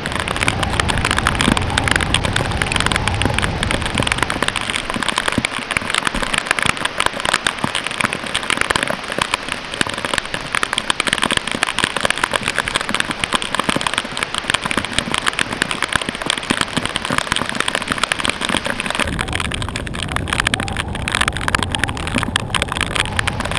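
Strong wind buffets and roars in gusts.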